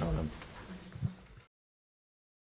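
Footsteps walk away on a hard floor.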